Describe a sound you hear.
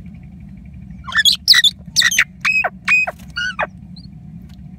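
A common myna gives harsh squawking calls at close range.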